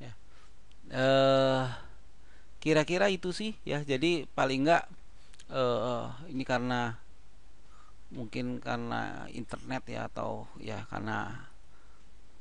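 A young man speaks calmly into a nearby microphone.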